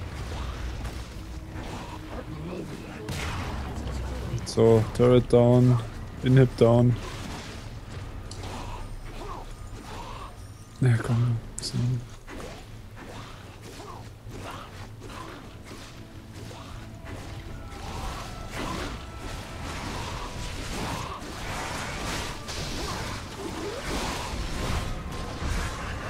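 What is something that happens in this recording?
Video game combat effects crackle and thud as characters trade blows.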